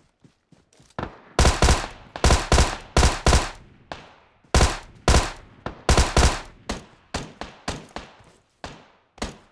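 An automatic rifle fires loud bursts of shots.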